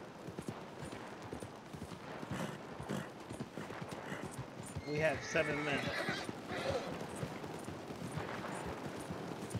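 A horse's hooves thud and shuffle on dirt.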